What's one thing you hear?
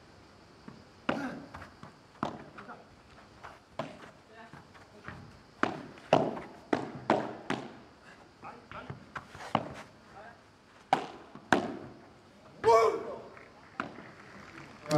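Padel rackets strike a ball in a quick rally, with sharp pops echoing off glass walls.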